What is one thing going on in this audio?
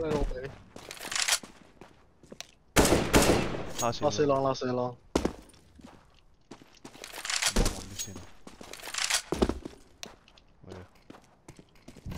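A rifle rattles and clicks as it is handled.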